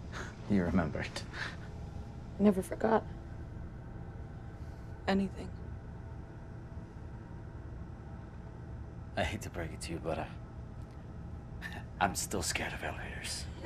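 A man speaks quietly in a low voice.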